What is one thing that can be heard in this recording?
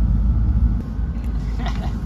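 A cat crunches dry food.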